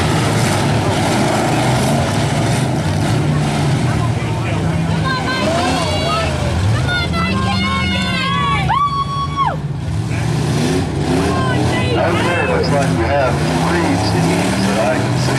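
A crowd cheers and shouts in the distance.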